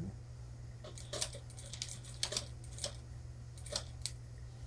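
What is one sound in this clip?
A sewing machine stitches in short rapid bursts.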